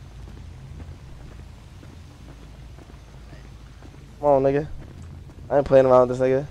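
Footsteps tap softly on pavement.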